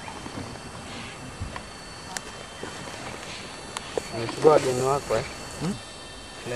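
A lioness growls softly up close.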